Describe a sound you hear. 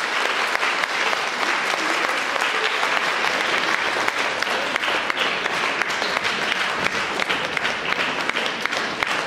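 An audience claps steadily in a large, echoing hall.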